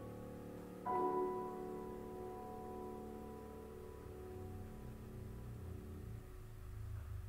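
A piano plays chords that ring out and slowly fade.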